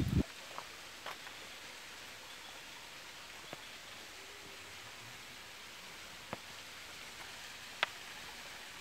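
Shallow water trickles softly over stones.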